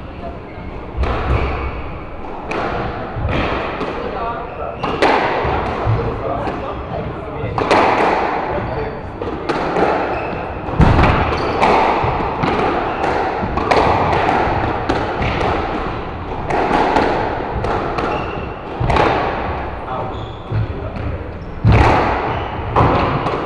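Squash rackets strike a ball that smacks off the walls of an echoing court.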